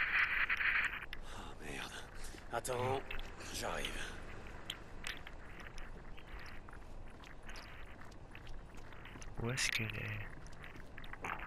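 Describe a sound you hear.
Footsteps crunch steadily on gravel and rock.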